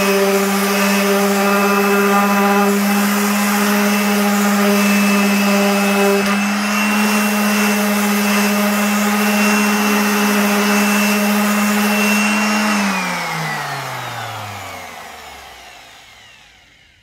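An electric sander whirs loudly, then winds down and stops.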